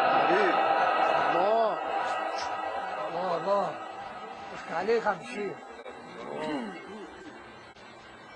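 An elderly man chants in long melodic phrases through a microphone in a reverberant space.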